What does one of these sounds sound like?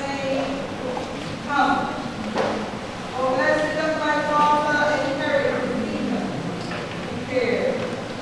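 A crowd of men and women sing together.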